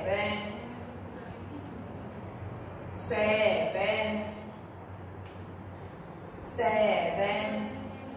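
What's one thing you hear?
A young woman speaks clearly and calmly, close by.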